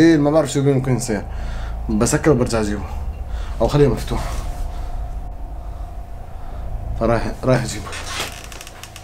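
A young man talks close by, quietly and with animation.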